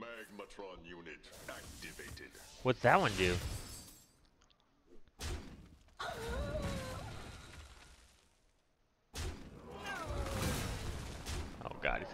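Video game sound effects whoosh and chime.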